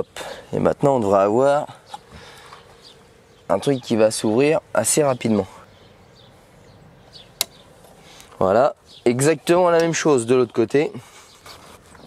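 A man talks calmly and close up.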